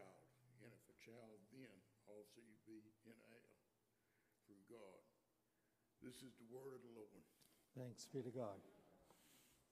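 An elderly man speaks calmly into a microphone, reading out.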